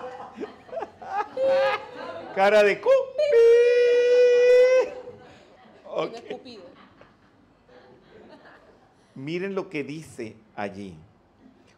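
An elderly man laughs loudly into a microphone.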